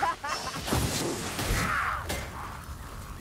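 A magic spell crackles and bursts.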